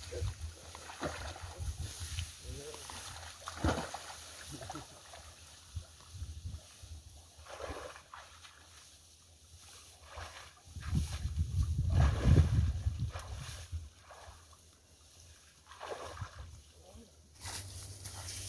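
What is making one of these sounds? Tall grass rustles and swishes as people push through it.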